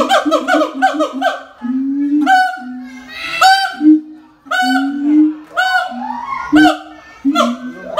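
A gibbon calls loudly with repeated hooting whoops that rise and fall.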